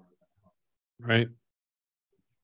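A man briefly says a loud word into a microphone.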